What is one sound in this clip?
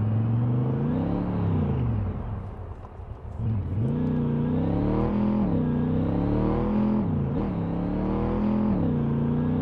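A car engine hums and revs up and down as it drives, dropping low briefly before picking up again.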